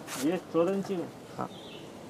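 A hand handles a plastic flowerpot with light knocks.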